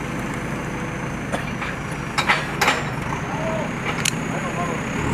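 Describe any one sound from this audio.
Metal debris clanks and scrapes as a digger bucket moves wreckage.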